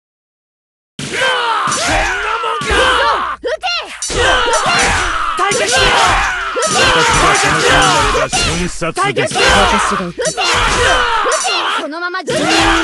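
Swords clash and strike in a battle.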